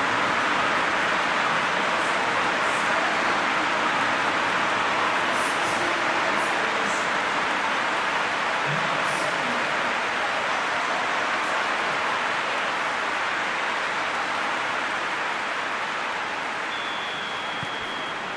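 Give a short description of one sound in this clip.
A large stadium crowd roars steadily and slowly fades.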